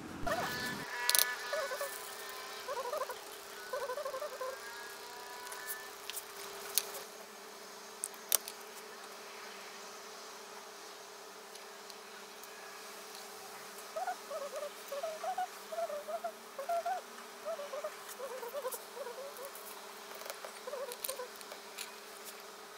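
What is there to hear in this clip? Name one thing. Small metal tools click and tap on a wooden board.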